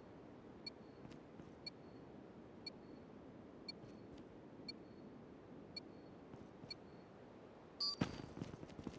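A countdown timer beeps once each second.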